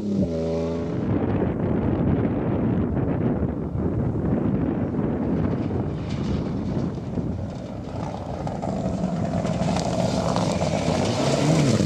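A second rally car engine approaches, growing louder and roaring past.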